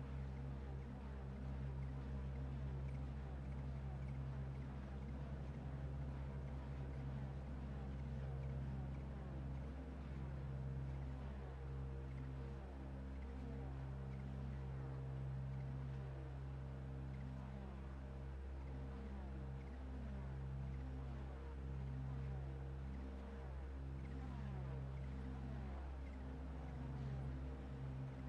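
A race car engine idles with a steady low rumble.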